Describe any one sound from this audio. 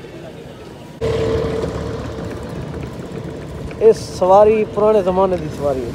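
A horse-drawn cart rolls along a paved road.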